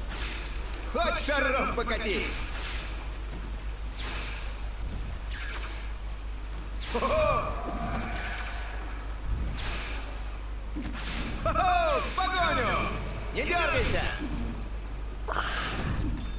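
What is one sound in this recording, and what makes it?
Magic spells crackle and weapons clash in a fantasy battle.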